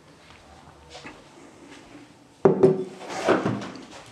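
A ceramic cup clinks down on a table.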